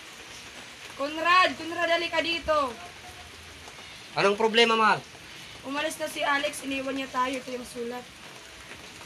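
A young woman speaks nearby with feeling, as if reciting.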